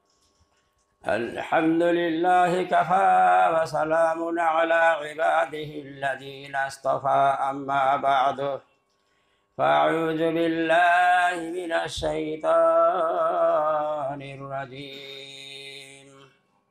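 An elderly man chants melodically into a microphone.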